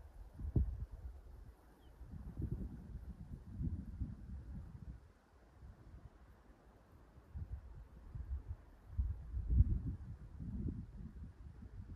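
Wind gusts outdoors, rumbling against the microphone.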